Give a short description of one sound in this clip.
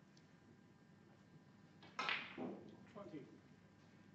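A snooker ball is set down on the cloth of the table.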